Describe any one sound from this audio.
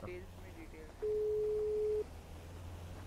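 A phone call tone sounds steadily.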